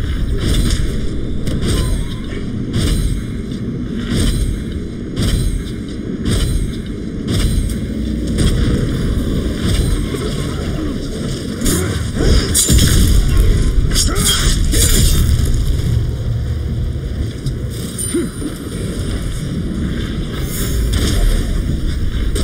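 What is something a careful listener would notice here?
Bowstrings twang as arrows are shot in quick succession.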